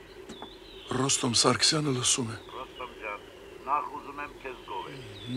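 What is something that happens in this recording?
An elderly man talks into a telephone.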